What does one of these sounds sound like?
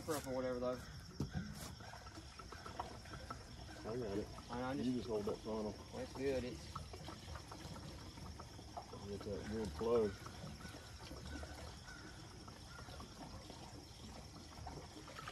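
Water glugs as it pours from a jug into a barrel.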